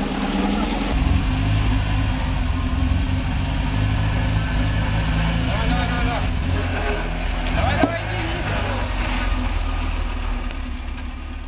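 A van engine idles with a low rumble.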